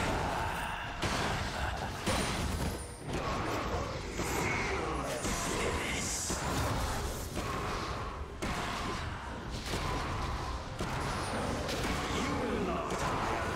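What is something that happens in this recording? Video game spell effects whoosh and clash in a fight.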